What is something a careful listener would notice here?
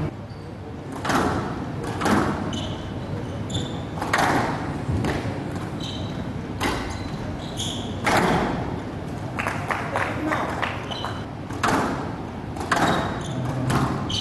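A crowd claps and cheers in an echoing hall.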